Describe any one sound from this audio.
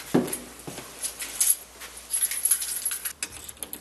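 Keys jingle and scrape in a door lock.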